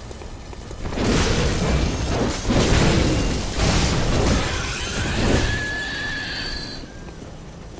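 Blades slash and clash loudly in a fierce fight.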